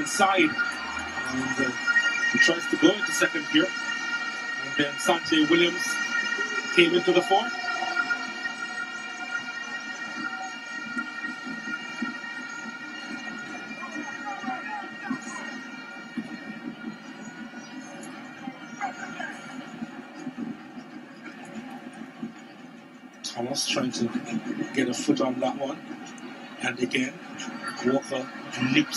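A large stadium crowd cheers and chants steadily, with a roar late on.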